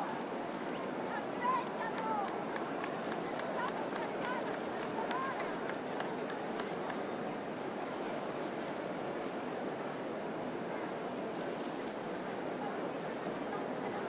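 A crowd chatters and calls out all around outdoors.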